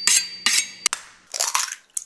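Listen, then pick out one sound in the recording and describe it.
An egg cracks against a knife blade.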